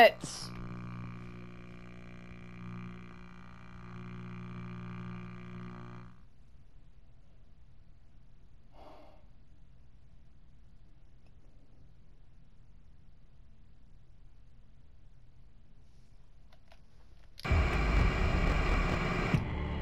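Television static hisses and buzzes.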